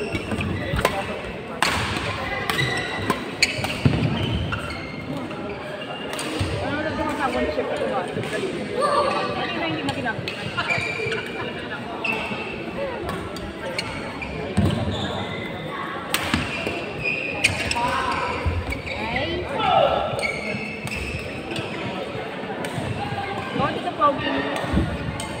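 Rackets strike a shuttlecock with sharp pops.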